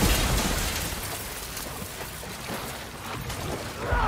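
Water churns and splashes.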